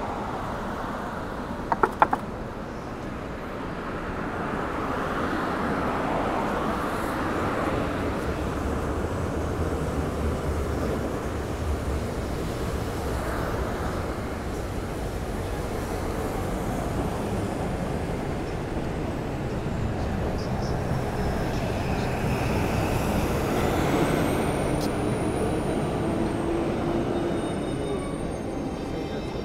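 Traffic hums steadily on a wet city street outdoors.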